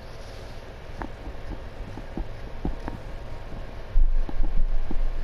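Footsteps tap on a hard floor as a man walks away.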